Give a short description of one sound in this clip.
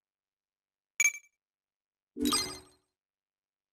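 A game menu chimes as a choice is confirmed.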